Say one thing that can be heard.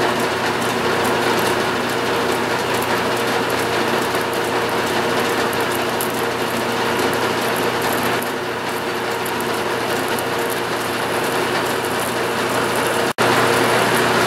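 A drill bit grinds and scrapes into spinning metal.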